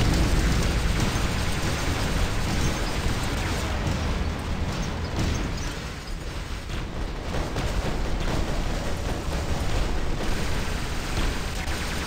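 Large robot footsteps thud heavily.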